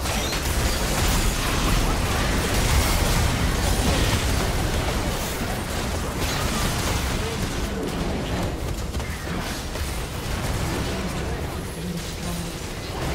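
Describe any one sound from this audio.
Magic blasts whoosh and crackle in a hectic fight.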